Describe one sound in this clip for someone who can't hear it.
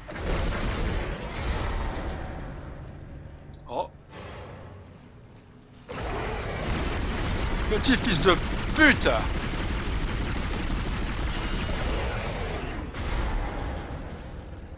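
A young man talks into a headset microphone.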